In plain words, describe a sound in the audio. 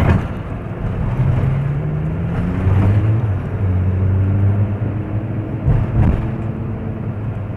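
A car engine revs up and down.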